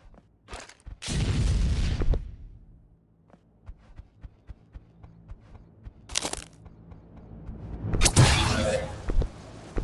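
A burst of fire roars and hisses, then fades.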